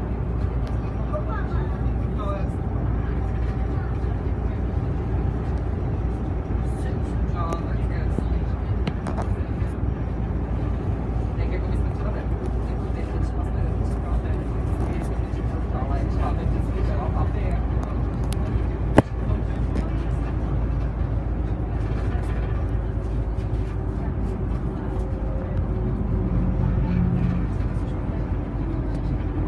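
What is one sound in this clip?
Loose fittings inside a bus rattle and click over bumps.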